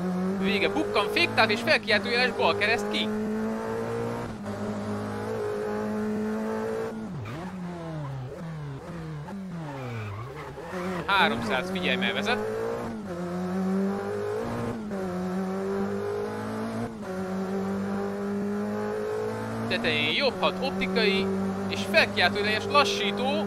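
A racing car engine drones loudly and steadily.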